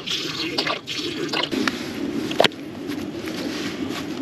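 Chopped tomatoes plop into a simmering pot.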